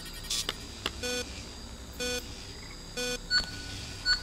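Electronic beeps sound at a steady pace as a countdown ticks.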